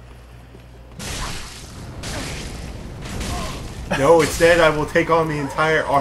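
Metal weapons clash and strike in quick blows.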